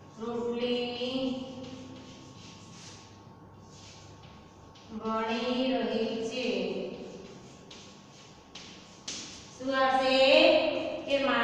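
A young woman speaks clearly and calmly, as if teaching.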